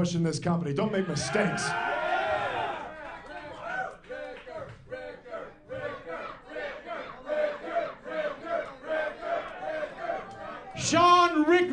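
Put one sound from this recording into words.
A crowd cheers and chants in a large echoing hall.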